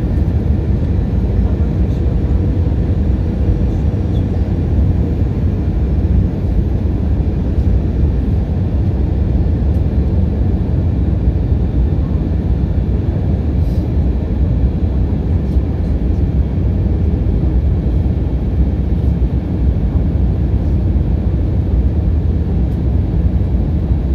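Strong wind rumbles and buffets steadily outdoors.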